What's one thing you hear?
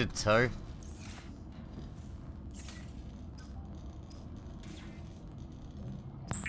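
Soft electronic menu blips sound now and then.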